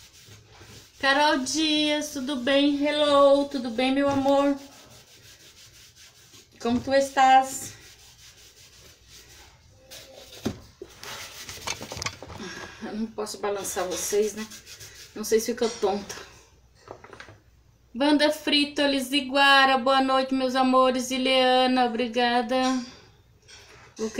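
A woman talks calmly and close by.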